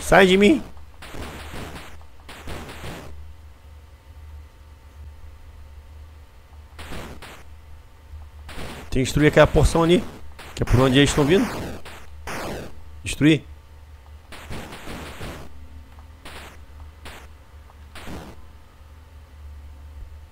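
Retro electronic game sound effects chirp and buzz in short bursts.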